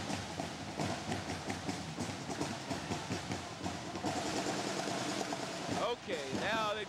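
Snare drums rattle and pound in a quick rhythm.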